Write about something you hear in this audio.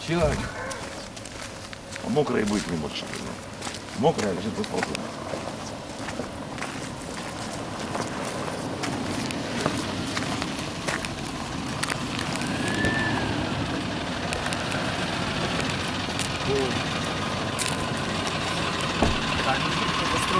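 Footsteps crunch on a rough road.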